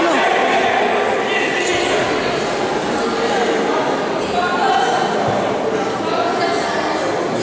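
Several adults and children talk at once, echoing in a large hall.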